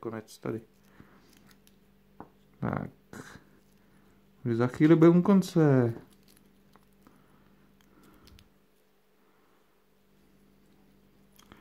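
Small metal parts tap and click faintly as fingers handle them.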